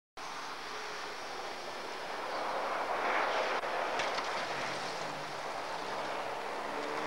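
A car engine roars loudly as the car speeds closer.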